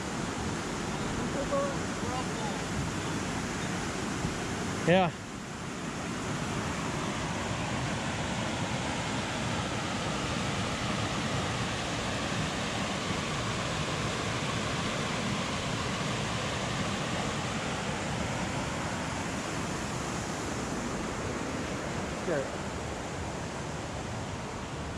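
Water rushes steadily over rapids.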